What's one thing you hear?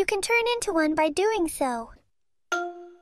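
A young girl speaks in a cartoonish voice.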